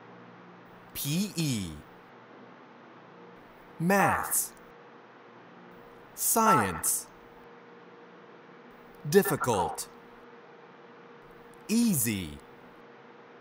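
A woman says single words slowly and clearly, with pauses between them, heard through a microphone in an online call.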